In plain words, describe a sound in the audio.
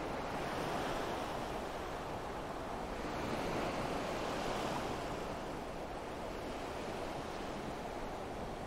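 Waves wash steadily onto a shore.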